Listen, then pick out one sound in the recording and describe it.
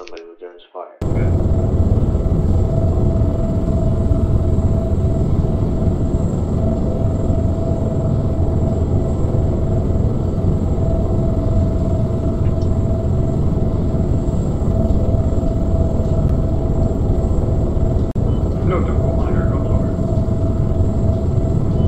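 A helicopter's engine and rotors roar steadily from inside the cabin.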